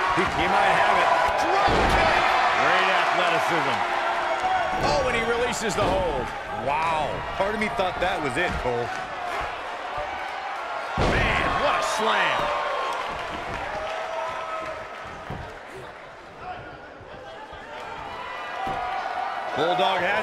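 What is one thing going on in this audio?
A crowd roars and cheers loudly.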